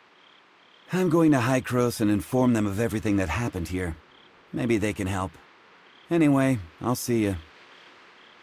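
A young man speaks calmly, close by.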